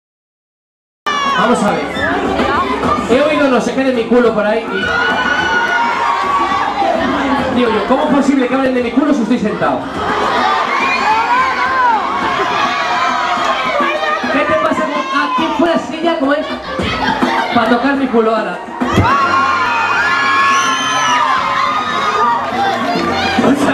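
A young man sings with feeling into a microphone, amplified through loudspeakers.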